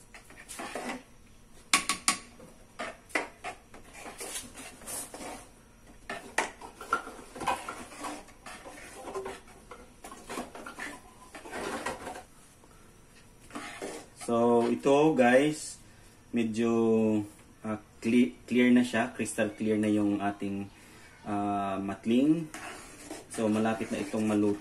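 Liquid sloshes and splashes in a pot as it is stirred.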